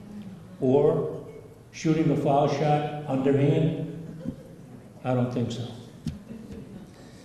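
An elderly man speaks with feeling into a microphone, heard through a loudspeaker in an echoing hall.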